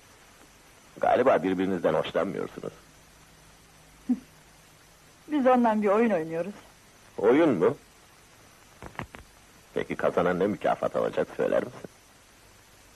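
A man speaks softly and warmly, close by.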